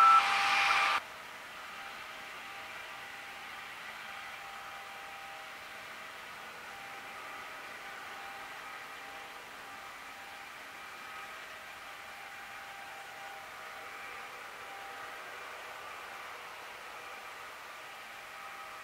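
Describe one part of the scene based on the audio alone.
Tractors drive slowly past with a low engine rumble.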